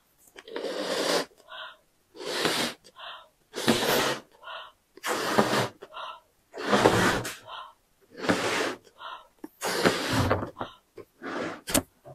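A woman blows hard into a balloon in repeated long breaths.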